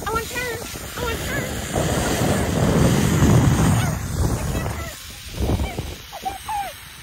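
Wind rushes loudly past a zip line rider.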